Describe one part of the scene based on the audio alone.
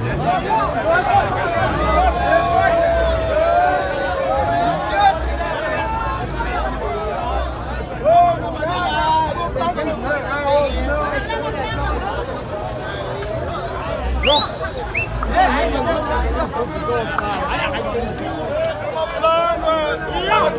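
A crowd of men and women talks and shouts loudly outdoors, close by.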